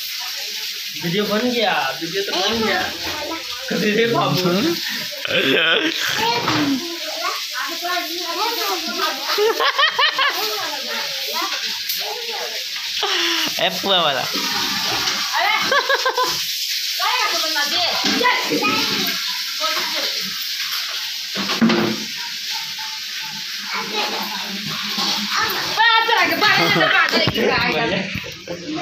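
Women talk with animation nearby.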